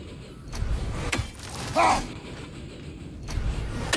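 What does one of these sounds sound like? A heavy axe thuds into a target.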